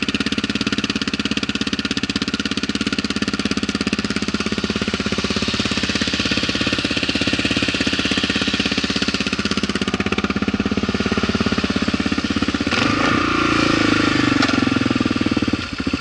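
A single-cylinder dual-sport motorcycle with an aftermarket exhaust idles with a lumpy, thumping beat.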